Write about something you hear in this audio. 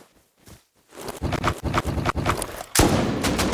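Soft clicks tap in quick succession.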